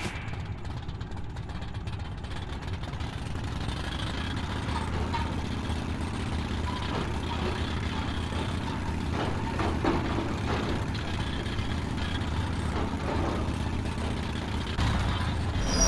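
A rail cart rumbles steadily along tracks in an echoing tunnel.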